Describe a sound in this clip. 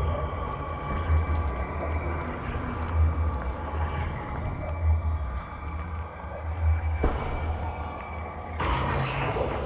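A magic spell hums and crackles.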